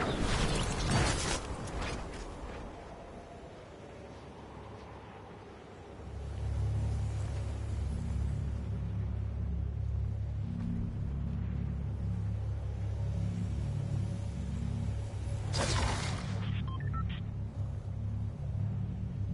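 Wind flutters softly against a gliding umbrella.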